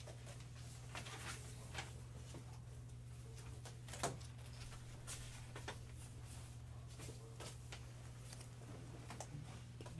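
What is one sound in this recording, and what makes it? Paper rustles on a table.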